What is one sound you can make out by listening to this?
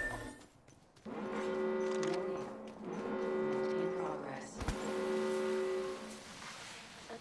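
A low warning tone sounds in repeated bursts.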